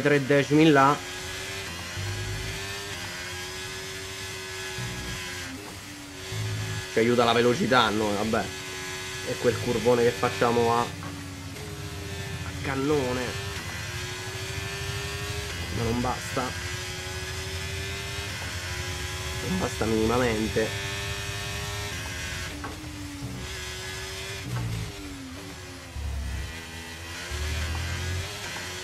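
A racing car engine whines at high revs, rising and dropping with gear changes.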